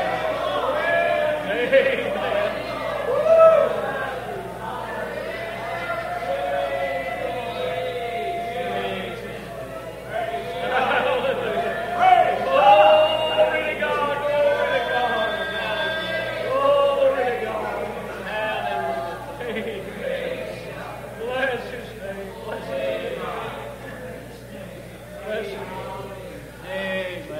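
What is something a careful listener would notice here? A man sings passionately into a microphone over a loudspeaker.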